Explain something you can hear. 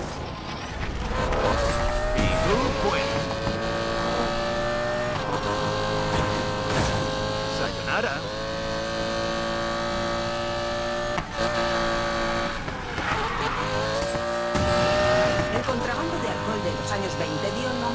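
A sports car engine roars at high revs, shifting up through the gears again and again.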